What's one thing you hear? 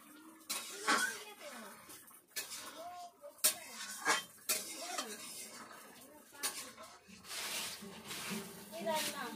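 Oil sizzles in a frying pan.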